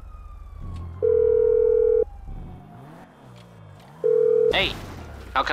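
A phone ringing tone beeps twice.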